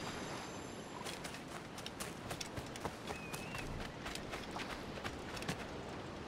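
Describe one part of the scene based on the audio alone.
Footsteps run over ground.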